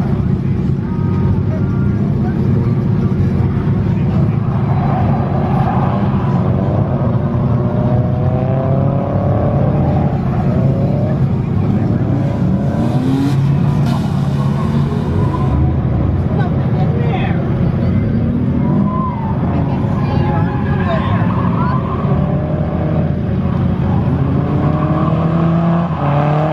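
A car engine roars and revs hard.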